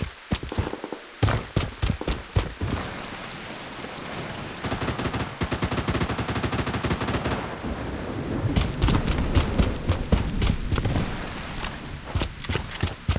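A rifle fires in bursts.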